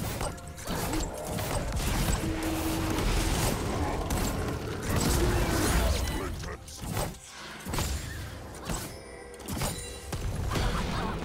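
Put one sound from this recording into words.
Spell blasts and impacts crackle and whoosh in a fast game fight.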